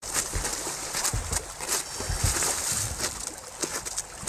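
Ice cracks and breaks as people fall through.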